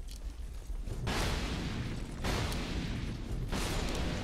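Sword swings and metal hits clang in a game.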